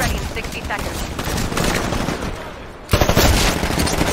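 Rifle gunfire rattles in rapid bursts.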